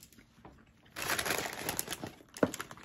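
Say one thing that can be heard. Paper wrappers rustle and crinkle close by.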